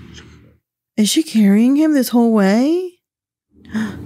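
A young woman cries out in a long, wavering voice close to a microphone.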